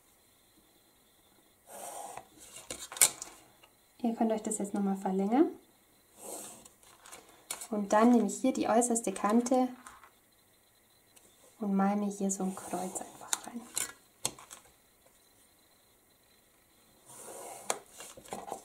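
A plastic ruler taps and slides on the paper.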